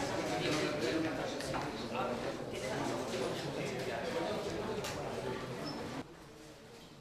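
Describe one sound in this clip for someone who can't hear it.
A crowd of men and women murmur and talk over one another.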